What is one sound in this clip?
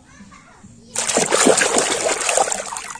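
A hand splashes and swishes through water.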